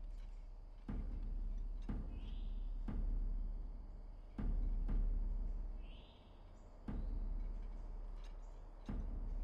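Footsteps tread on stone steps.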